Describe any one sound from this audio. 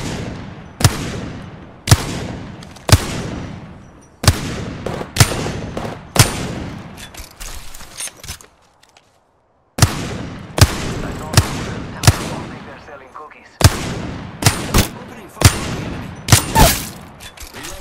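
A rifle fires single shots that echo across open ground.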